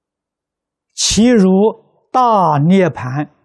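An elderly man speaks slowly and calmly, close to a microphone.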